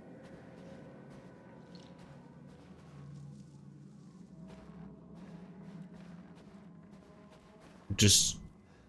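A man talks quietly into a headset microphone.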